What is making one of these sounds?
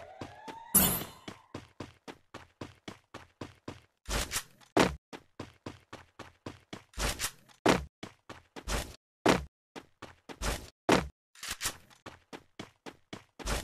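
Gunshots bang out in loud single blasts.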